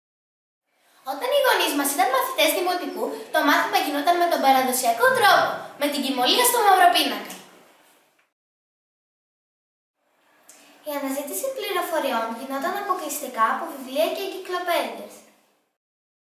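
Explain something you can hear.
A young girl speaks clearly and calmly, close by.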